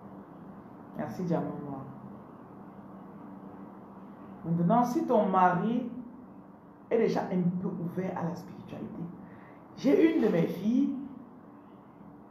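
A young woman speaks calmly and close to the microphone, in short bursts.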